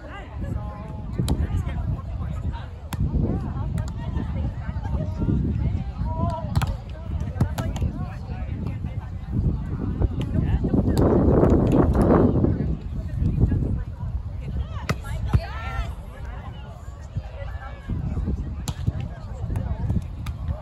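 A crowd of young men and women chatter and call out nearby.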